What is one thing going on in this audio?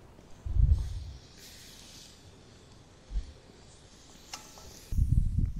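Marinade splashes and sizzles over hot coals.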